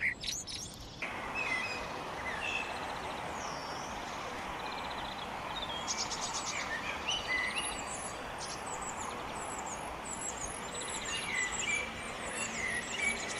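A blackbird sings softly from within leafy branches.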